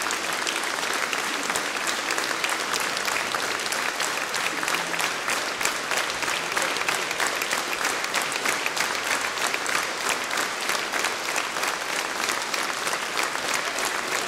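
An audience claps steadily in a large echoing hall.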